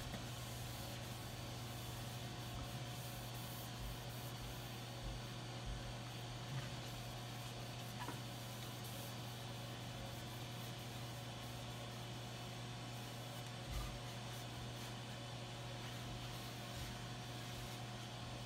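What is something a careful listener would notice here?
A cloth softly rubs over a smooth wooden surface.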